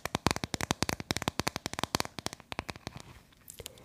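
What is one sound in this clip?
Fingernails tap quickly on a hard plastic case close to a microphone.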